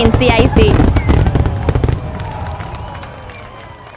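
Fireworks crackle and pop in the distance.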